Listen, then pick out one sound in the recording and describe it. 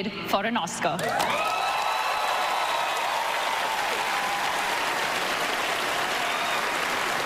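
A large audience applauds and cheers loudly.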